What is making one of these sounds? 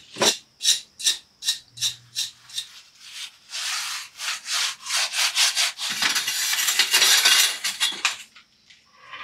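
A trowel scrapes across wet concrete in quick, repeated strokes.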